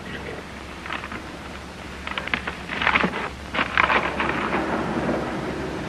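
A young man chuckles softly.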